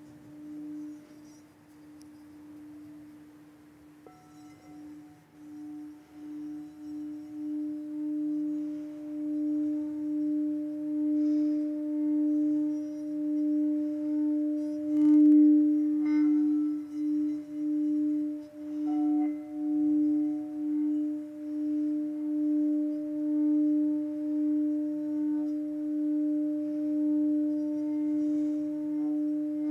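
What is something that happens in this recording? A singing bowl rings with a steady hum that swells and fades in slow pulses.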